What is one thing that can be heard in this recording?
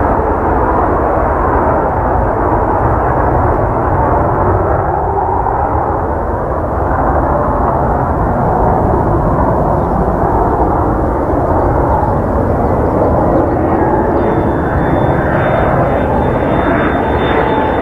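A jet engine roars steadily as a fighter plane approaches, growing slowly louder and rising into a whine.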